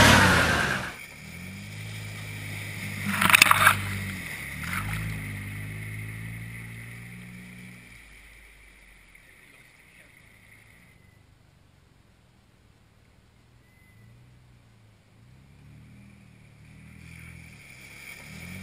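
A car engine hums as a vehicle drives through a muddy puddle.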